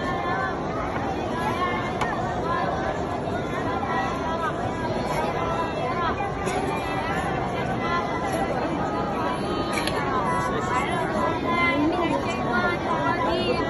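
Many boys recite aloud together, filling a large echoing hall with a murmur of voices.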